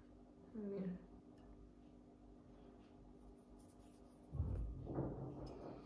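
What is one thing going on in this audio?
A fork scrapes on a plate.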